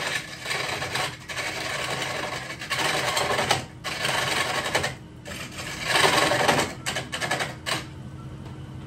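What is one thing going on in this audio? A bench grinder grinds metal with a harsh, loud rasp.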